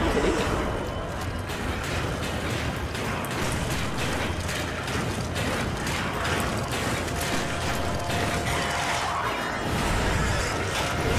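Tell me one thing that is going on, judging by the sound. Footsteps clang quickly on a metal floor.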